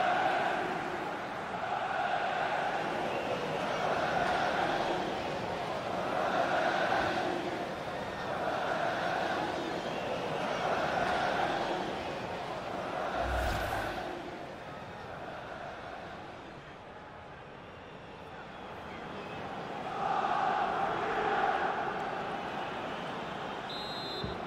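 A large stadium crowd chants in a steady rhythm.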